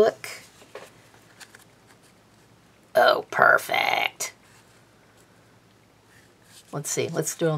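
Paper rustles and crinkles as hands fold it.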